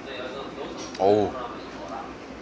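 A young man lets out a short excited vocal sound close by.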